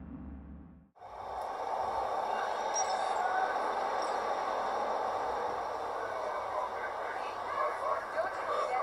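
Video game city sounds play through speakers.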